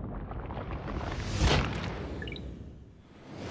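A boulder rumbles as it rolls.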